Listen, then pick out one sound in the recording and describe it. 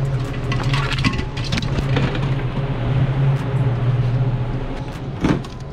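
Metal cans clink and rattle as they are handled.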